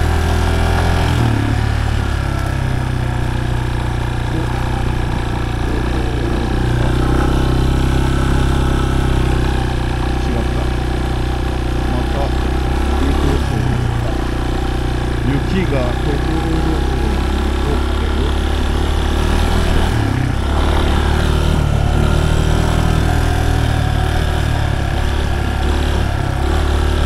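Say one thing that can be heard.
A motorcycle engine hums steadily and rises and falls in pitch.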